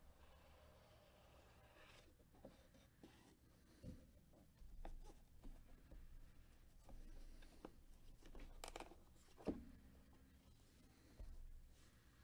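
A cardboard sleeve slides off a box.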